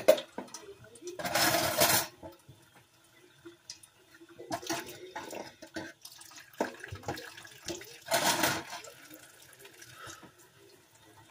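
Objects knock and clatter on a countertop.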